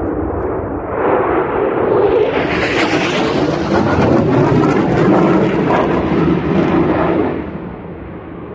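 A jet plane roars loudly overhead and then fades away.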